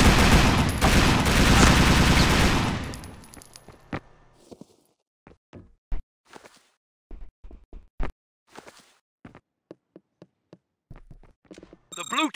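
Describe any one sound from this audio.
Quick footsteps thud as a figure runs.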